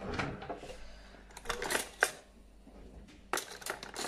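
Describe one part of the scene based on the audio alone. A drawer slides open.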